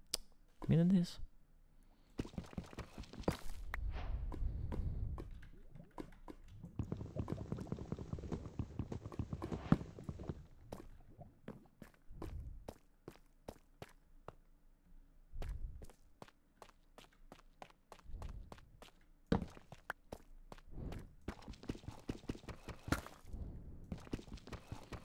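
Footsteps tap steadily on hard stone.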